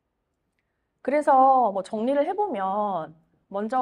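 A woman speaks calmly into a microphone, heard through loudspeakers.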